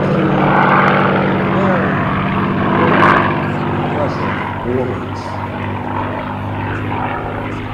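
A propeller plane engine drones steadily overhead.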